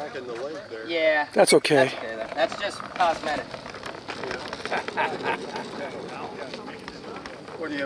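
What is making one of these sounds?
The wings of a large model bird creak and flap as a man moves them.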